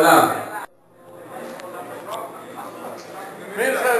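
Men murmur and chat in an echoing hall.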